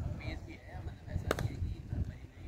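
A cricket bat strikes a ball in the distance.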